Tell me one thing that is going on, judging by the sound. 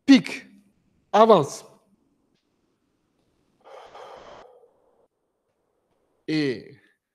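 An elderly man calls out short, sharp commands nearby.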